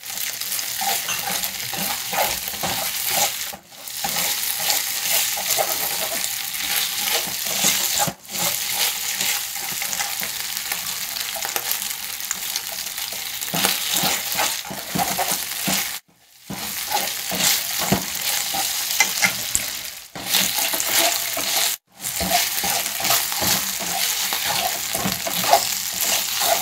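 Meat sizzles loudly in a hot frying pan.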